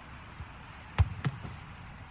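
A ball is kicked hard with a sharp thud.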